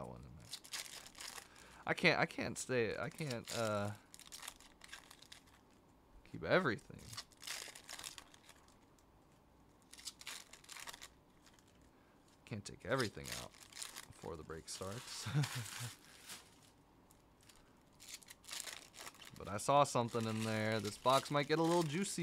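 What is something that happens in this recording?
Foil card wrappers crinkle and tear.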